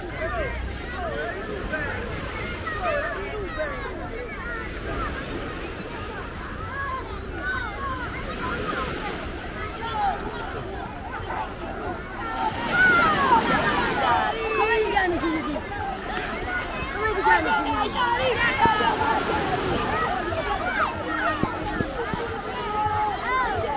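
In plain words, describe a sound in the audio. Small waves wash onto a pebbly shore.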